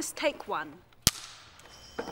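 A clapperboard snaps shut with a sharp crack.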